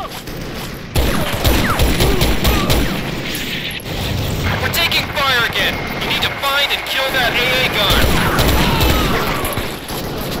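A submachine gun fires in bursts.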